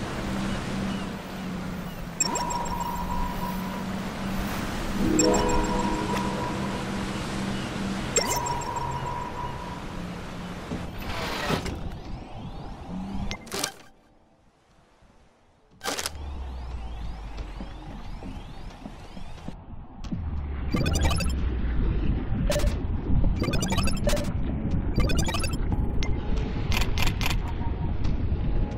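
Upbeat game music plays.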